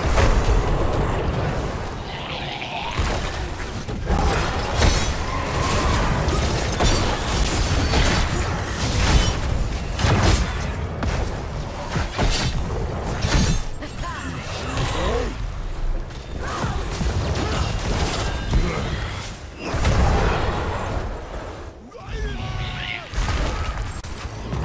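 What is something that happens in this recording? Game spells and attacks crackle, zap and clash in a busy battle.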